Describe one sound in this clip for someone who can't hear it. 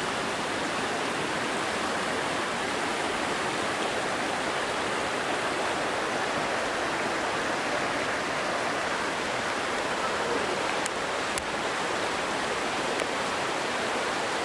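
A shallow river rushes steadily over rocks close by.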